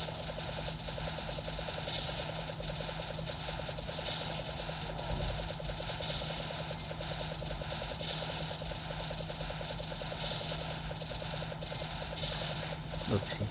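Rapid electronic hit sounds tick steadily.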